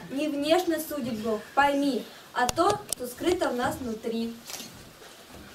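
A group of young girls sings together nearby.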